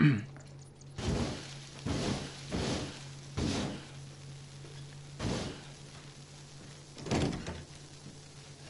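A flamethrower roars in short bursts.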